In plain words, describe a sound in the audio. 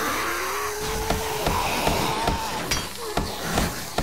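A hammer knocks against wood in short repeated blows.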